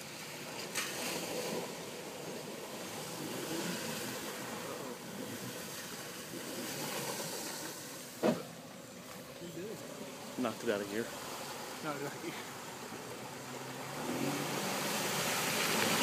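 Water splashes and sloshes around a vehicle's wheels.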